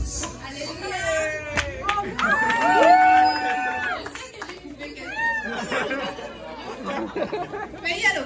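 A crowd of adults cheers and talks loudly nearby.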